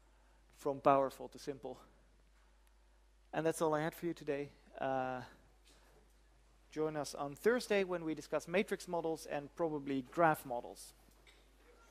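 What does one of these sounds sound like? A man lectures calmly, heard through a microphone.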